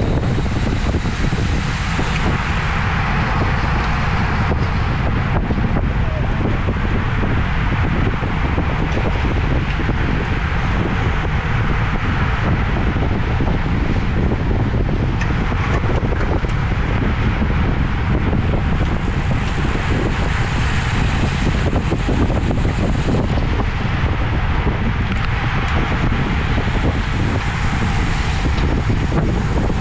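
Wind roars loudly across a microphone.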